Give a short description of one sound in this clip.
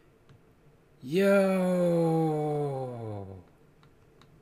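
A young man exclaims loudly into a close microphone, his voice drawn out and falling.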